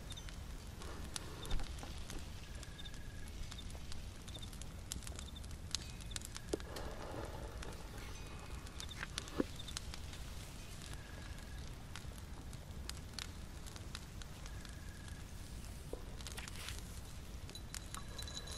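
A small flame crackles softly and pops now and then.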